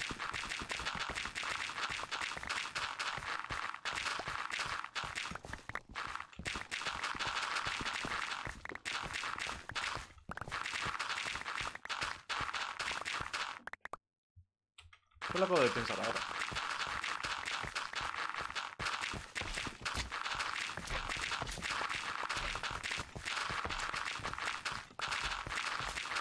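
A pickaxe chips at stone blocks in quick, repeated knocks.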